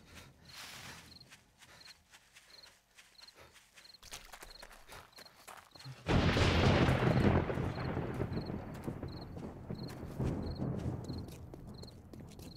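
Footsteps tread steadily and quickly over grass and gravel.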